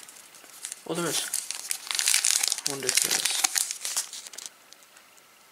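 Foil card packets crinkle and rustle in hands.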